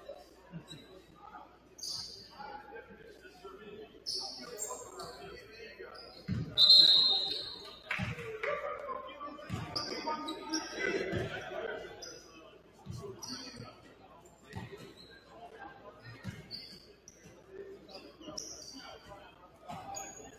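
Sneakers squeak on a hardwood floor in a large echoing gym.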